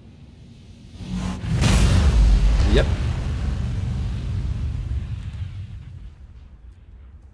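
A huge explosion booms and roars, then rumbles away.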